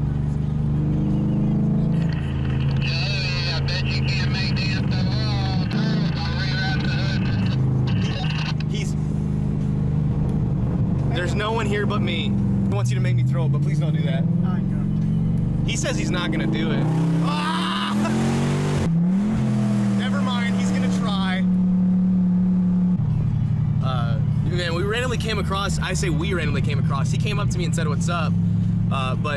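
A car engine hums and revs steadily from inside the cabin.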